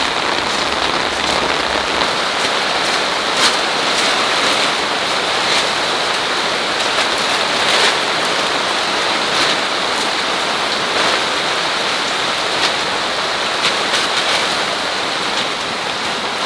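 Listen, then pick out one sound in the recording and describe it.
Rain patters steadily outdoors.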